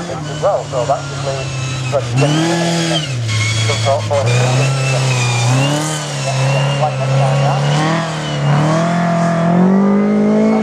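A buggy engine roars and revs up and down as the buggy races around a dirt track outdoors.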